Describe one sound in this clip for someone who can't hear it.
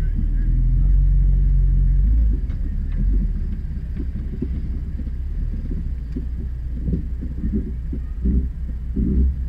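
An off-road vehicle's engine idles and rumbles up close.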